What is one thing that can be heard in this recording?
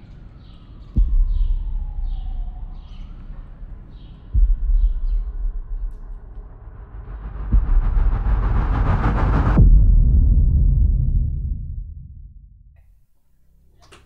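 Wind gusts across an outdoor microphone.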